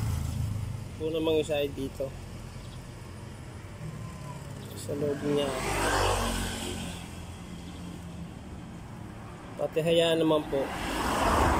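A man speaks quietly close by.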